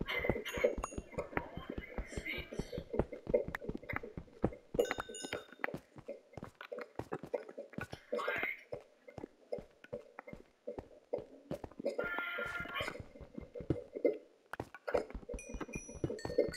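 A pickaxe chips rapidly at stone with quick, dry taps.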